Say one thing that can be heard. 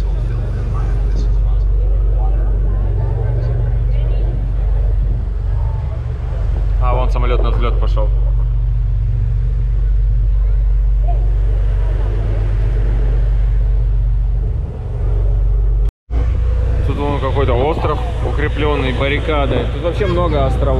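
Wind blows across the open water.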